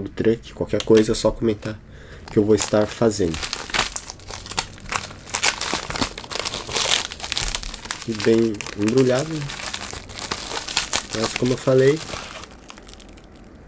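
A foil packet crinkles and rustles in hands.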